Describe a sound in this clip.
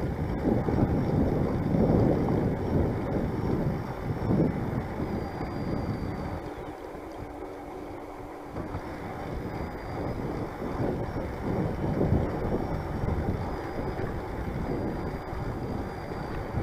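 Wind buffets a microphone outdoors in gusts.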